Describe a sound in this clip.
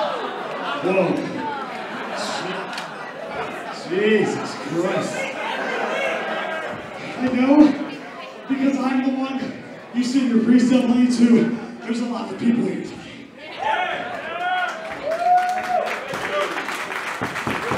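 A young man talks loudly and with animation through a microphone and loudspeakers, echoing in a large hall.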